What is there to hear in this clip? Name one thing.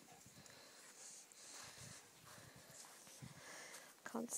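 A dog pants nearby.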